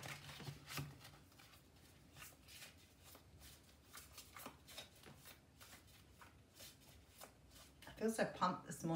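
Playing cards are shuffled with soft riffling and tapping.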